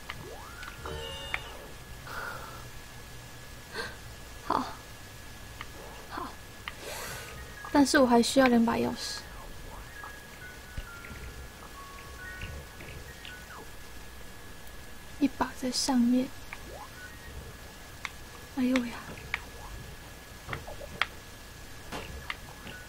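Short electronic blips and chirps sound now and then.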